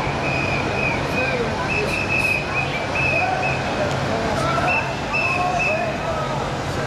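An emergency vehicle's siren sounds in short, repeated blasts.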